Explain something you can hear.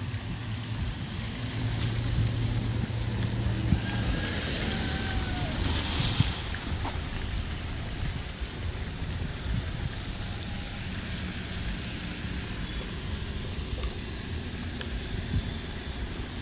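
Tyres splash slowly through puddles on a wet road.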